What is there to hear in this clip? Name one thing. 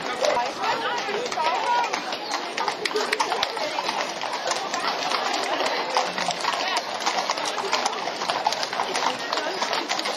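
Horses' hooves clatter on a paved street.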